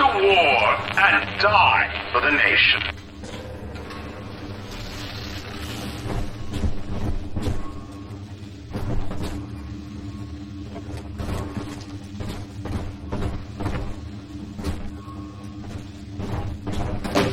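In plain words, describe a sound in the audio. Electricity crackles and buzzes in bursts.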